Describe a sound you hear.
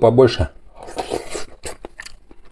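A man slurps soup from a spoon.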